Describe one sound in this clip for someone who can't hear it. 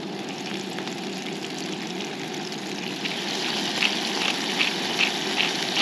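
A gas stove burner hisses steadily.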